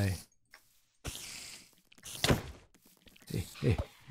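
Fire crackles and roars in a short burst.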